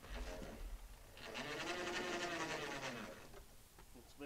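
A hand winch whirs.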